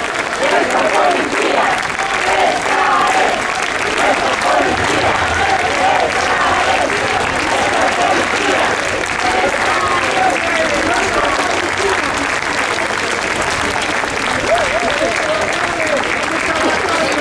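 A crowd of men and women cheer and shout.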